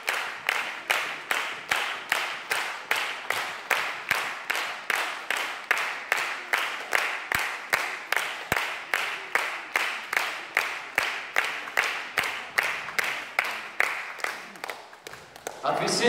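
An audience claps in steady rhythm in a large hall.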